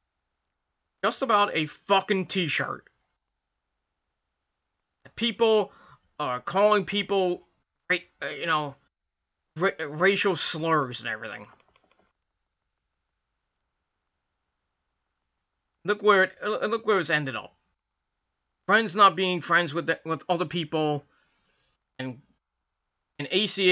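A middle-aged man talks calmly and close to a microphone, in short bursts with pauses.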